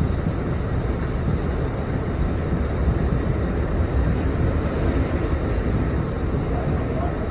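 Wheels clatter over the rails.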